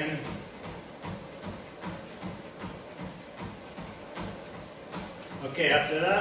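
Running feet thud steadily on a treadmill belt.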